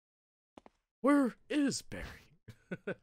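A man laughs into a close microphone.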